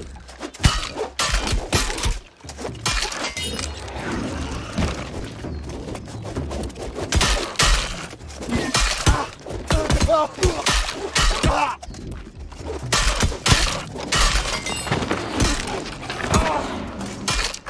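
Magic blasts crackle and whoosh.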